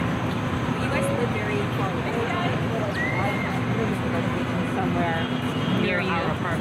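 Two young women chat quietly nearby.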